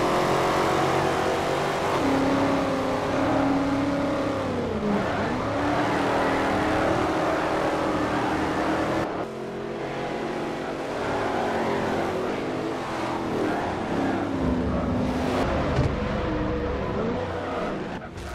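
Racing car engines roar and rev up and down as the gears shift.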